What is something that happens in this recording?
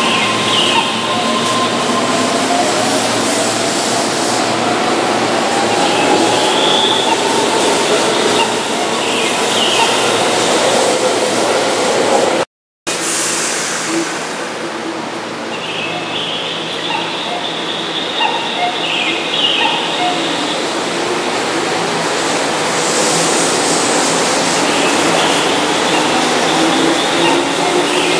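Train wheels screech in high, rising and falling squeals.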